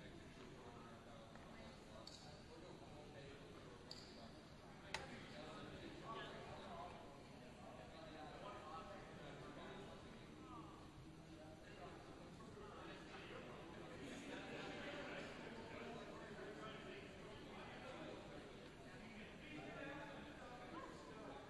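Young people chatter indistinctly at a distance in a large echoing hall.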